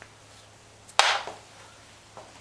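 A paintbrush is set down on a table with a sharp knock.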